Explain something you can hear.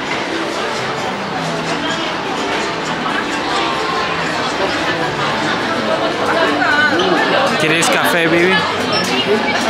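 A crowd of men and women chatters all around indoors.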